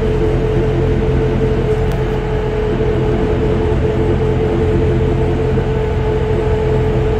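A metro train's electric motors whine with a steady tone.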